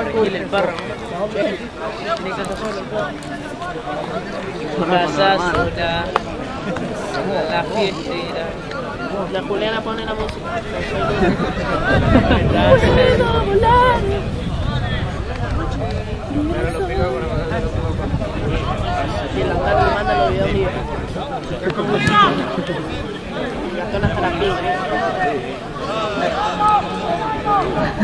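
Players call out to each other on the pitch.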